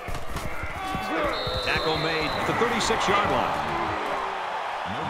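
Football players crash together in a tackle.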